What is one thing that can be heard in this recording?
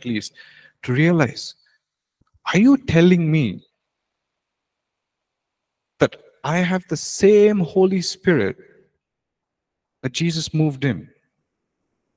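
A young man speaks with animation into a microphone, in short bursts with pauses.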